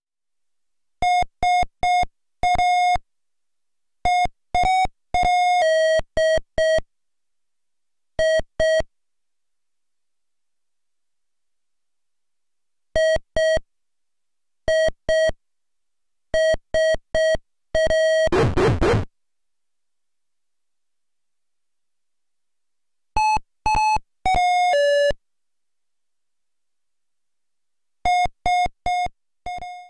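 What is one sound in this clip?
A simple electronic beeping tune plays in short, evenly paced notes with pauses between phrases.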